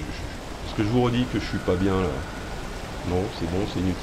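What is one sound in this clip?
A waterfall rushes with a steady roar.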